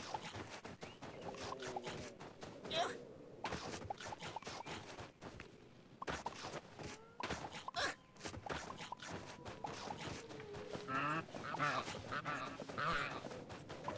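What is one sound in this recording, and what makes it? Game music and chiming sound effects play as a character runs and collects fruit.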